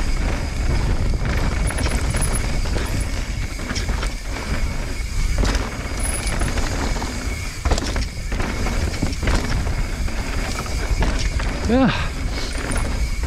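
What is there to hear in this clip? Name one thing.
Wind rumbles loudly past the microphone.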